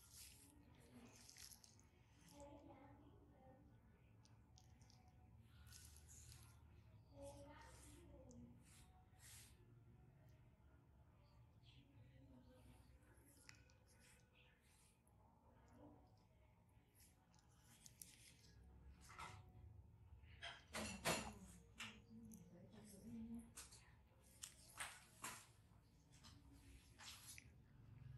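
Gloved fingers press and rub against skin close by.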